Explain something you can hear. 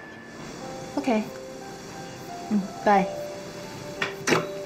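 A woman talks on a phone nearby.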